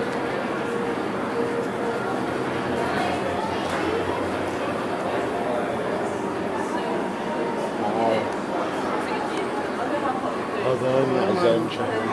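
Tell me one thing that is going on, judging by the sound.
Several adult men talk quietly at a distance in a large, echoing room.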